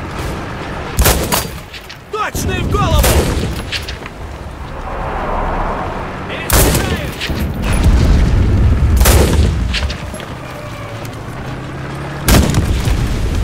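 A rifle fires sharp, loud shots.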